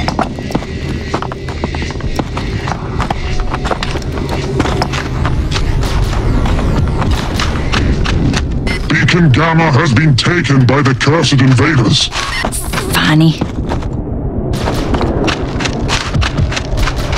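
Footsteps patter quickly as someone runs.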